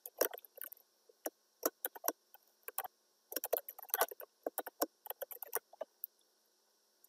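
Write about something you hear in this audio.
Keyboard keys click quickly as someone types.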